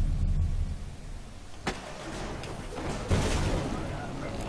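A loud explosion bursts with a deep boom.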